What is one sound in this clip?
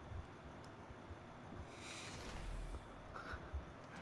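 A rocket launcher fires with a whoosh.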